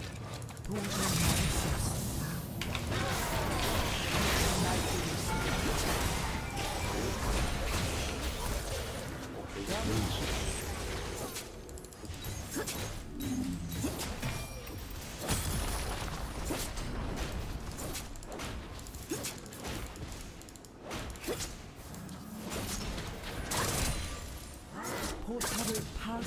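Game combat effects clash and burst in quick succession.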